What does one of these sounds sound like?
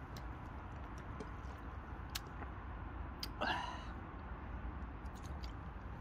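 A young man gulps water from a plastic bottle.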